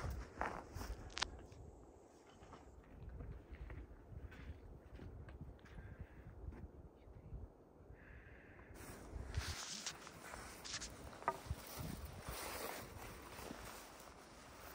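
Wind rumbles across an open mountainside.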